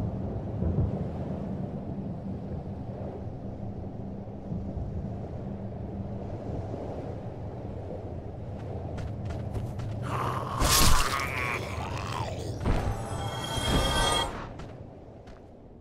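Armoured footsteps clank on stone steps.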